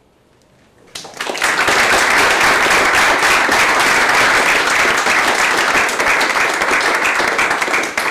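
An audience applauds loudly in a large room.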